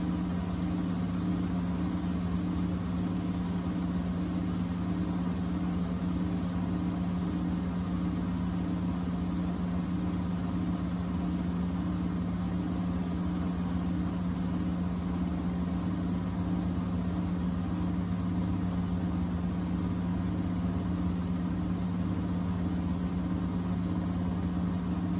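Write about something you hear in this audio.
A washing machine hums steadily as its drum turns.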